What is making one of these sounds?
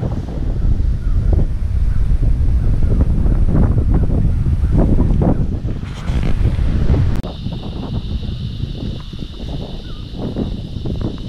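Wind blows hard and gusts across the microphone outdoors.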